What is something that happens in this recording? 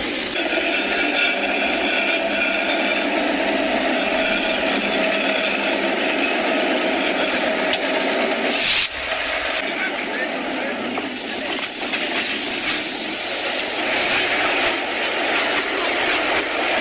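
A diesel locomotive engine rumbles loudly close by.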